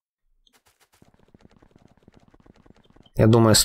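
Footsteps patter quickly on dirt.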